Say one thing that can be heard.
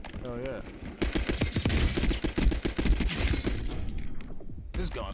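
Gunfire crackles in rapid bursts, close by.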